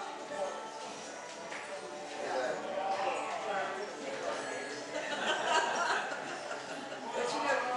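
A banjo plays a lively tune in an echoing hall.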